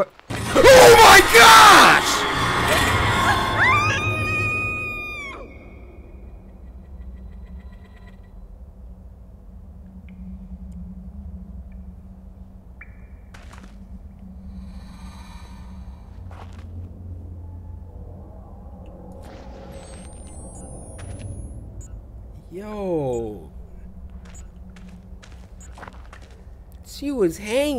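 A young man shouts and screams loudly close to a microphone.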